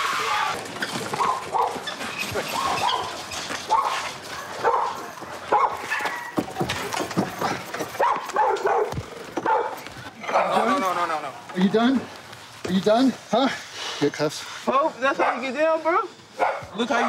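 A man shouts commands loudly and urgently.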